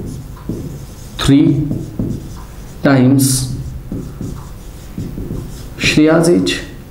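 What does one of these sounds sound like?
A man speaks slowly and clearly, as if teaching.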